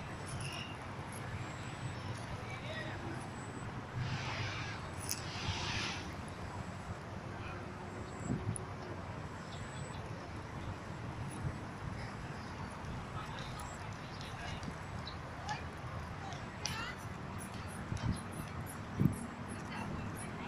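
A squirrel's claws scratch on tree bark.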